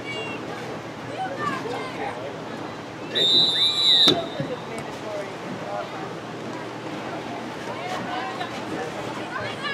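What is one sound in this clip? Young women players call out across an open field.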